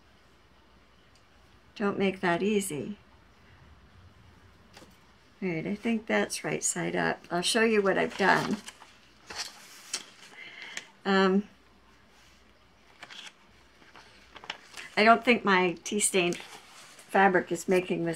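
Fabric rustles as a woman handles it.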